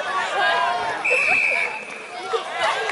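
A referee's whistle blows one long blast.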